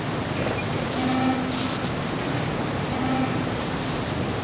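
An alarm horn sounds in short, repeated blasts.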